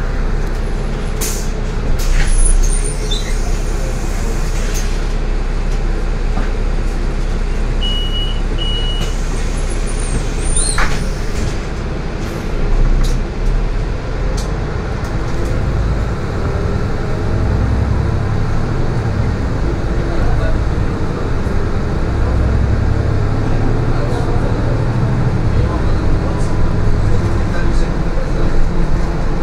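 Tyres hum steadily on the road surface.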